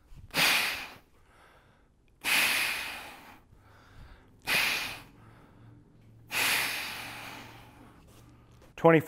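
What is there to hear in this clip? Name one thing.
A man exhales sharply and forcefully.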